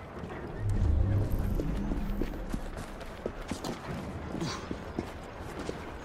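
Footsteps run across hard ground.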